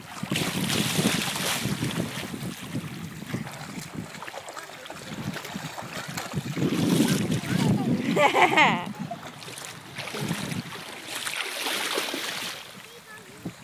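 A small child splashes and wades through shallow water.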